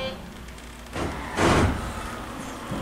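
Train doors slide shut with a thud.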